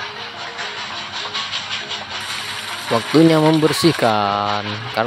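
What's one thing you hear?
Water pours and splashes from a tap.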